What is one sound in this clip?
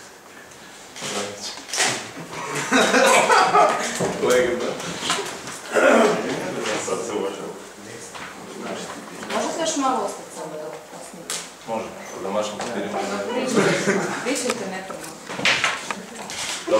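A man speaks into microphones in a room.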